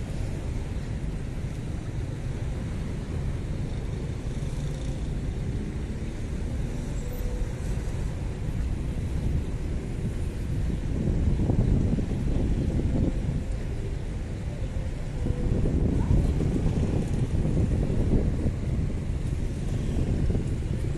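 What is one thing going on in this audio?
Cars drive past on a nearby street with a low rumble.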